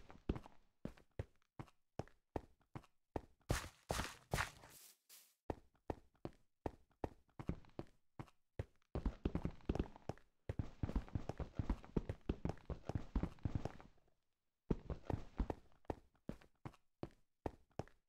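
Footsteps crunch on snow at a steady walking pace.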